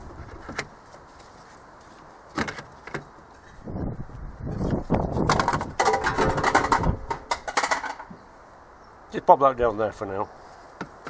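Plastic engine parts click and rattle under a man's hands.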